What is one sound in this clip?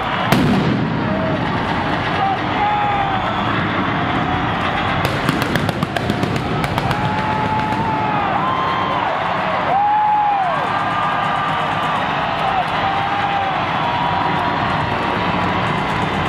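A large crowd cheers and whistles in a huge echoing arena.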